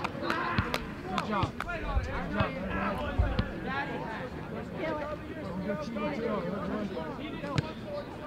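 Several young men chatter and call out nearby, outdoors.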